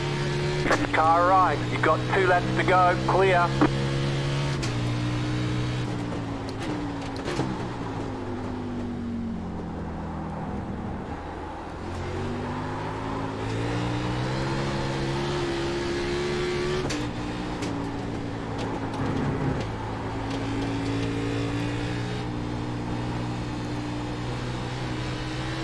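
A race car engine roars steadily, dropping in pitch while slowing and rising again while speeding up.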